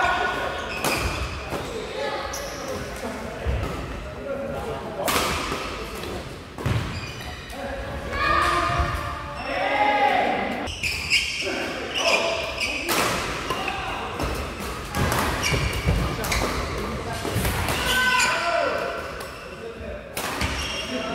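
Badminton rackets smack a shuttlecock sharply in a quick rally, echoing in a large hall.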